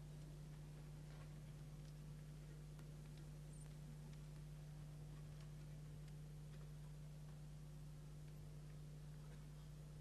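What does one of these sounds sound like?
An orchestra plays in a large hall.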